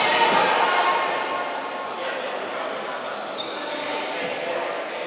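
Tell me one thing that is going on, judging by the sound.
Sneakers squeak on a hardwood court in a large echoing hall.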